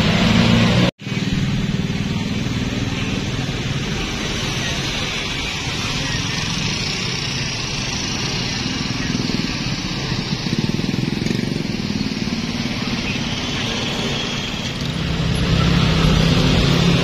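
Motorcycle and car engines rumble past in busy traffic.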